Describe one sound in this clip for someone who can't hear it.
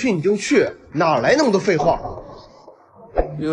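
A young man speaks with irritation, close by.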